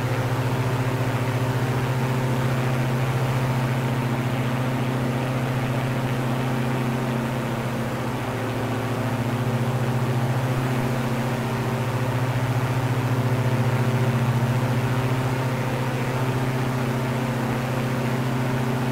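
Twin propeller engines drone steadily with a low, even hum.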